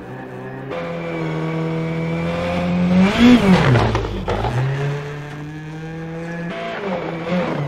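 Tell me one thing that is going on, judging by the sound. A rally car engine roars past at high speed, its pitch rising and falling.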